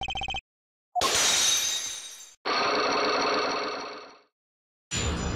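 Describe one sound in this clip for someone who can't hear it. Heavy chains shatter and clatter away.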